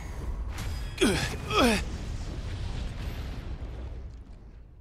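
Magical blasts roar and crackle.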